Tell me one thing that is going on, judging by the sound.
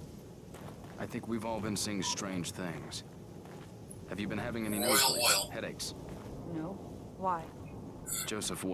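A man speaks calmly and asks questions.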